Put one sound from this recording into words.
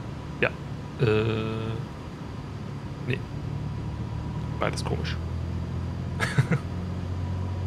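A man speaks briefly and calmly into a close microphone.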